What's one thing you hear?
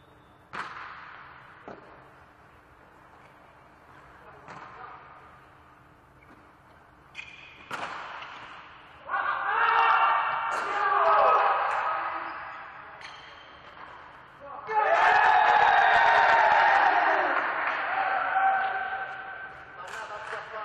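A volleyball is struck with sharp smacks in a large echoing hall.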